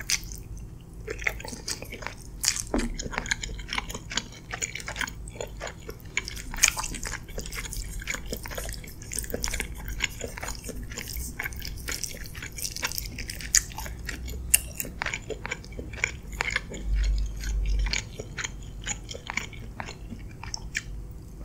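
A young woman chews food loudly and wetly, very close to a microphone.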